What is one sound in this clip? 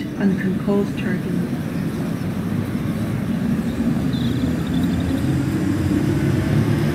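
An electric train rumbles and pulls away, its motor droning louder.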